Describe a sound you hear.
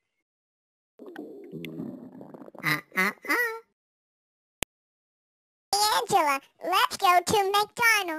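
A high-pitched cartoon male voice talks and laughs with animation.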